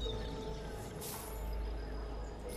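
A short chime sounds as an item is bought.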